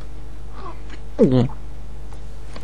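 A man speaks briefly in a firm, commanding voice.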